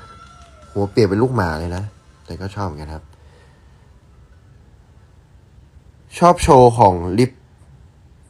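A young man speaks close to a phone microphone in short bursts.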